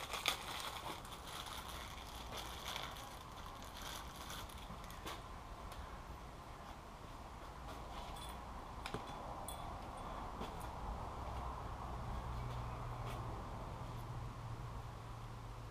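Small metal parts clink and rattle as they are handled.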